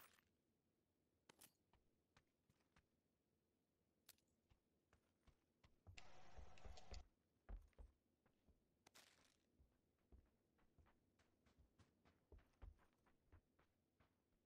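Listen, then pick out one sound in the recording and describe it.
Footsteps tap steadily on a hard wooden floor.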